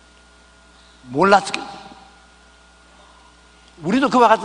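An elderly man preaches with animation into a microphone.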